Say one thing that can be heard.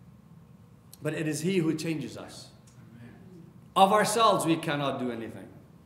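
A middle-aged man speaks calmly into a microphone in an echoing room.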